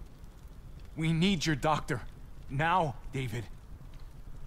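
A young man speaks in a strained, emotional voice.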